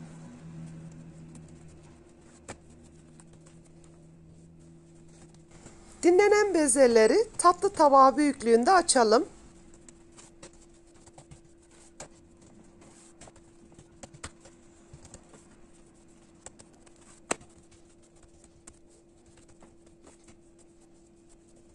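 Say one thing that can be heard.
Hands pat and press soft dough with soft dull thuds.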